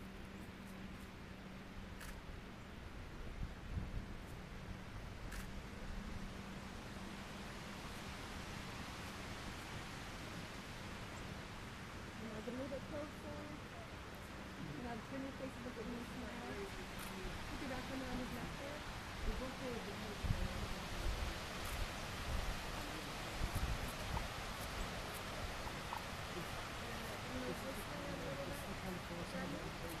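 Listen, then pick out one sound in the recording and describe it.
Wind rustles through tall trees and buffets the microphone outdoors.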